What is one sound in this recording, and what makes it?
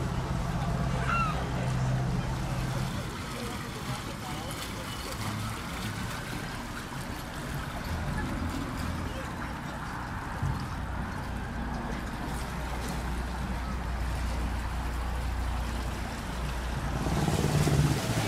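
A motorboat engine hums steadily nearby.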